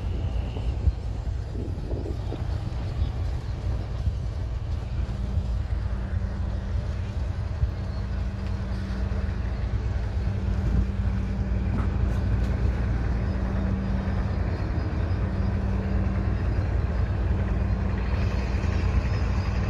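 Water laps gently against boat hulls.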